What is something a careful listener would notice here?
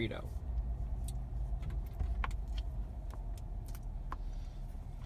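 A young woman chews food with soft clicks.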